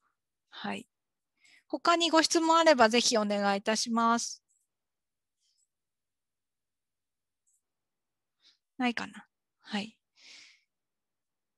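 A woman speaks calmly into a microphone, heard as if over an online call.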